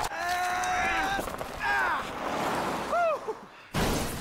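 Men strain and grunt while pushing a car.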